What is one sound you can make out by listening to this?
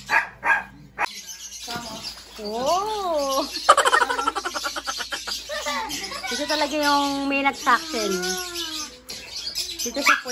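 A young girl laughs and chatters close by.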